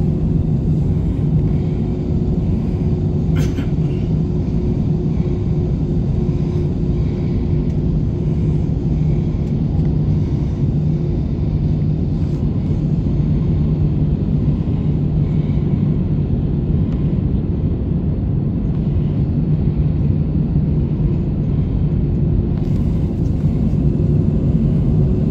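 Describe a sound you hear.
Jet engines roar steadily inside an aircraft cabin.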